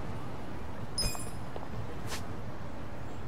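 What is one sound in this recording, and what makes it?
A soft electronic chime sounds as a menu opens.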